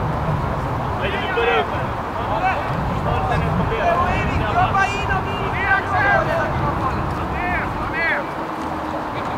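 Men shout and call to each other across an open field outdoors.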